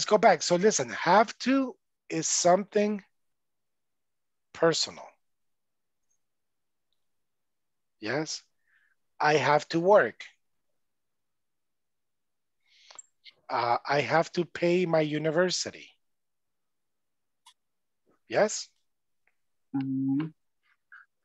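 A man speaks with animation over an online call, in short bursts with pauses.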